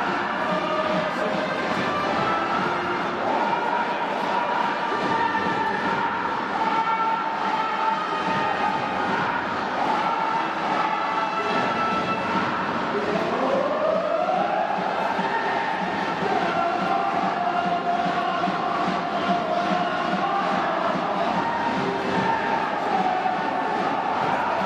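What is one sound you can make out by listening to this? A brass band plays a loud, lively tune in a large echoing stadium.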